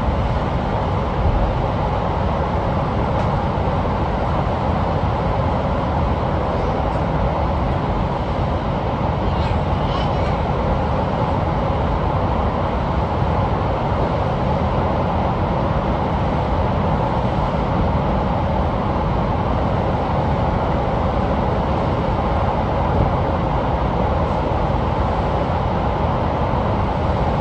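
Wheels clatter on the rails.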